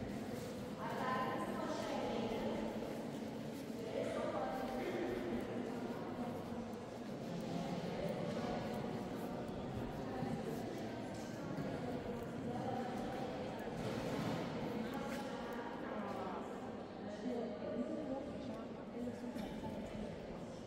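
A group of adults murmur and talk in a large, echoing hall.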